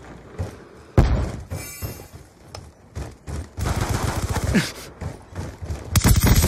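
Gunshots fire in quick bursts, loud and close.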